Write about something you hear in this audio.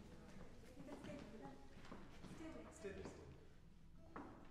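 A woman speaks quietly in a large echoing hall.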